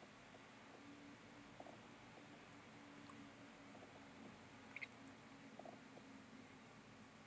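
An infusion pump motor hums softly.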